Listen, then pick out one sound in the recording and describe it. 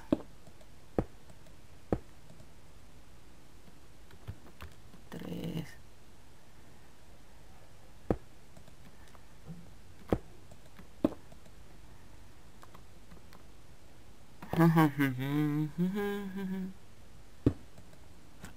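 Stone blocks are set down one after another with short, soft knocks.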